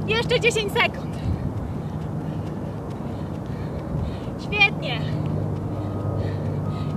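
Light footsteps tap on dirt as a woman jogs in place.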